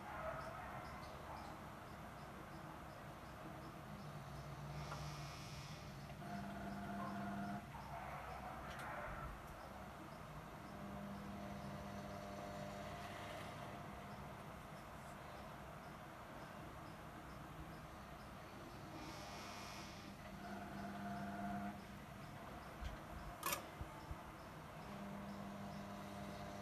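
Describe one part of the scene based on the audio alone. A small machine hums and whirs steadily close by, its pitch rising and falling now and then.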